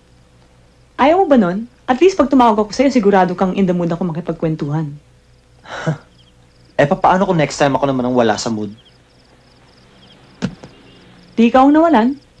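A young woman speaks with feeling nearby.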